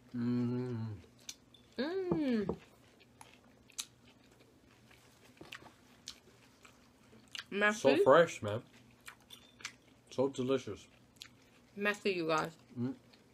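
Food crunches as it is chewed up close.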